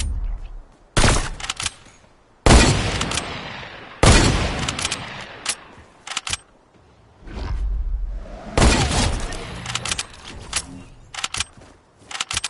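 Loud gunshots bang out one after another, each followed by a ringing tail.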